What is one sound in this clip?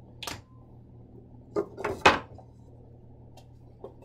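A wooden panel knocks as it is lifted off a box.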